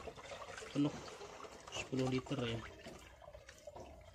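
Wet sludge pours from a plastic bucket into another bucket.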